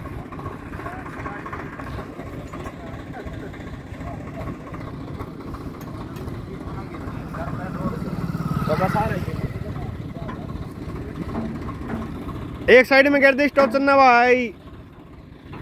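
A tractor engine idles with a low rumble.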